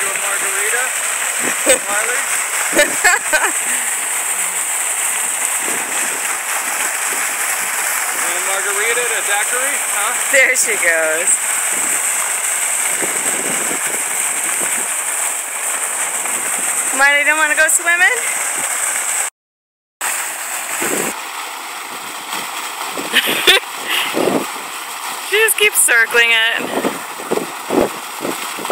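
Fountain water splashes and gushes steadily into a pool.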